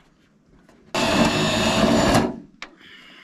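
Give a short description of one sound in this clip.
A power drill whirs briefly.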